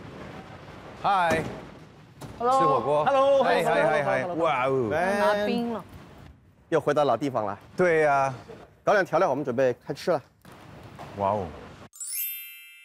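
Young men talk cheerfully with each other.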